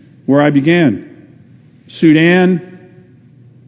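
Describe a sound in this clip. A middle-aged man speaks firmly into a microphone in a large echoing hall.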